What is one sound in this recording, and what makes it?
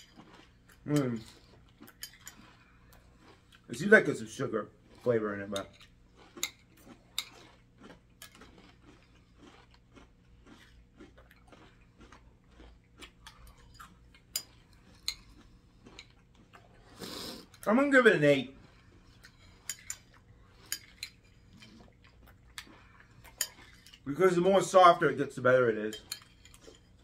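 A man makes short sounds of enjoyment while eating, close by.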